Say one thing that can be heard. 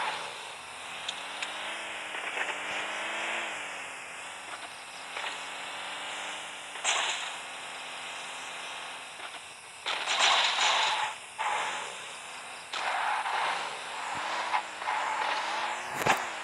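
A vehicle engine hums and revs as it drives.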